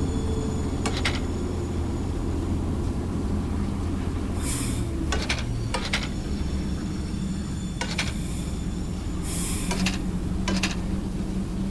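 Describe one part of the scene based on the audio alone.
Metal levers clunk into place.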